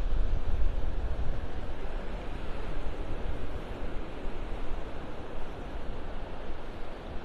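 Small waves wash onto the shore and break gently.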